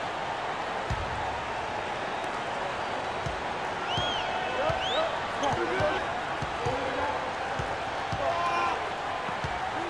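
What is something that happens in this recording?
A basketball bounces on a hardwood floor in a steady rhythm.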